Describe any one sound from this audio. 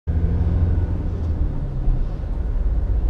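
A motorcycle engine runs close alongside.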